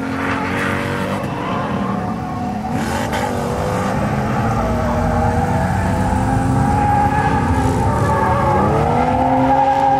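A car engine revs hard and changes pitch as the car speeds around a track in the distance, growing louder.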